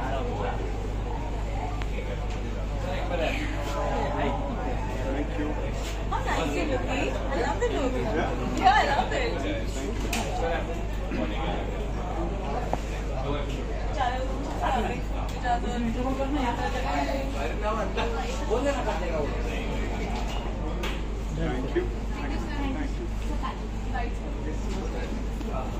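A crowd of adults chatters nearby.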